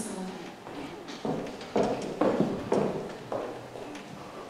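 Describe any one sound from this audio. Heels click on a wooden stage as a woman walks off.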